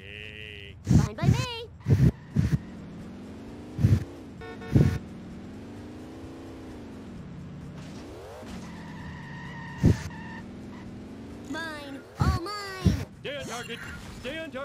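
A car engine revs and hums as it drives.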